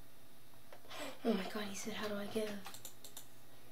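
A young boy speaks close to a microphone.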